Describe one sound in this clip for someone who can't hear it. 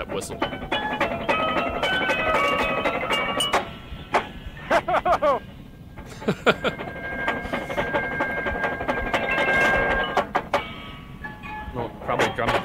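A marching band plays brass music through a speaker.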